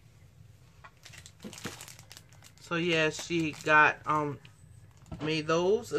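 Plastic card sleeves crinkle and rustle as they are handled.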